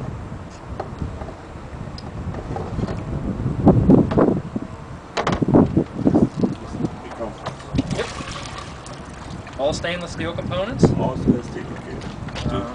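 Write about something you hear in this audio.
Water splashes in a plastic barrel.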